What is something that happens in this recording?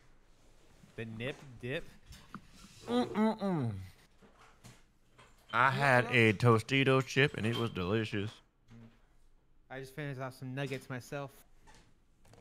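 A man talks with animation into a close microphone, in bursts.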